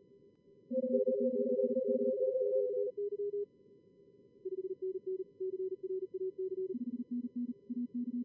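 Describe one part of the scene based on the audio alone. Several Morse code signals beep at once in quick short and long tones, at different pitches.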